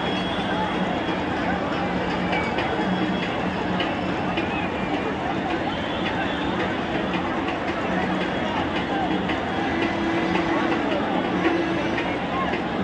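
A large crowd murmurs and chatters loudly outdoors.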